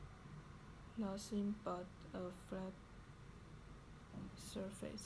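A young woman reads aloud quietly, close by.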